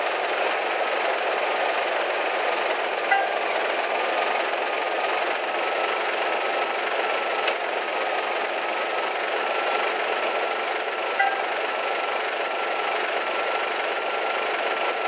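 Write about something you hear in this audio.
A hovercraft's fan engine drones steadily.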